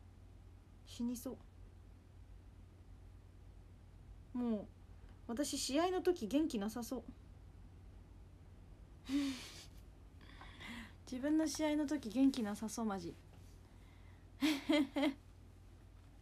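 A young woman talks animatedly and close up, in short bursts.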